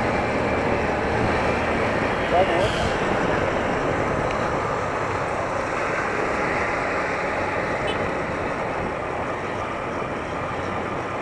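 A motorcycle engine roars nearby.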